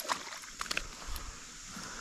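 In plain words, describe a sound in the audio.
A fish flops about on grass.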